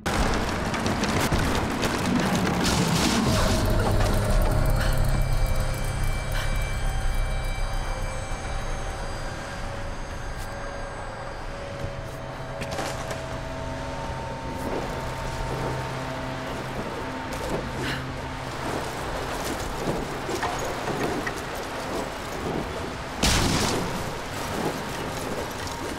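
Wind roars steadily.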